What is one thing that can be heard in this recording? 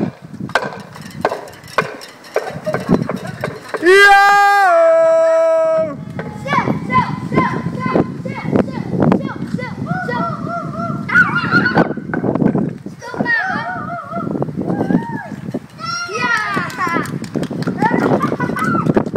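Young boys talk and shout with animation close by.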